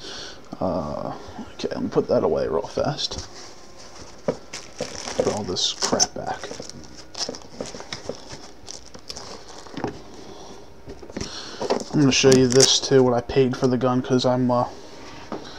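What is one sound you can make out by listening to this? Hands knock and bump against a hard case.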